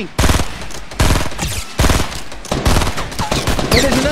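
A rifle fires a quick run of loud shots.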